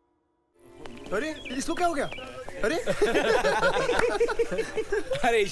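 Young men laugh and call out cheerfully nearby.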